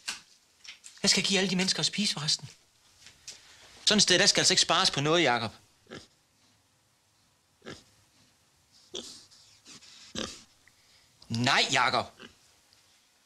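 A man with a calm voice answers nearby.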